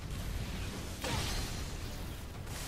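Blades slash into flesh with a sharp impact.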